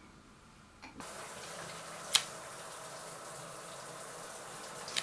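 A shower sprays water in a steady hiss.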